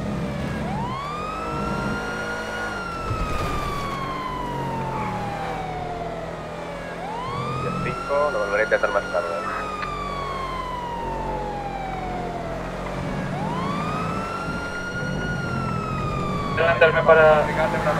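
A police siren wails, rising quickly and then slowly falling, over and over.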